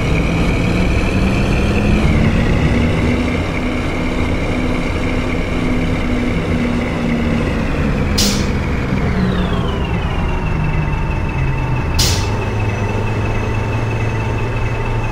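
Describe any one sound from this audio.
A bus engine hums steadily and drops in pitch as the bus slows.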